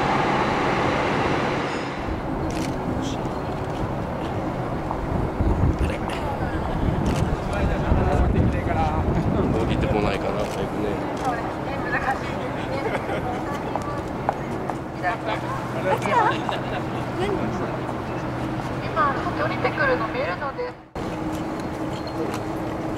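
A parked jet airliner hums steadily nearby.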